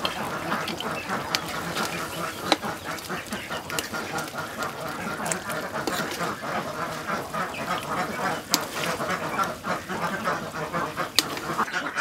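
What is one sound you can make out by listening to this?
Broth bubbles and sizzles in a pan.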